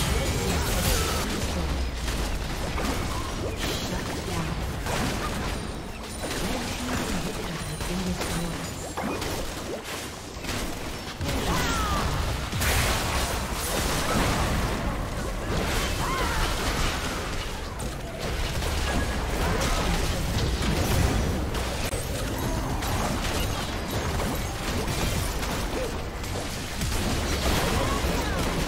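Game spells and attacks crackle and boom in a busy battle.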